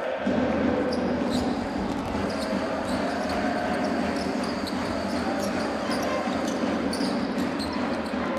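Sneakers squeak on a court.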